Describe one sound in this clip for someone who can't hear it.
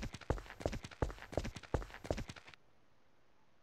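Footsteps tap steadily on a hard road.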